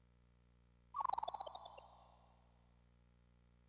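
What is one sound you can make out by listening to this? A short electronic error chime sounds and rings out.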